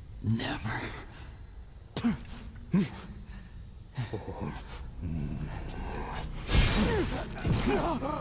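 A young man grunts and cries out in pain, close by.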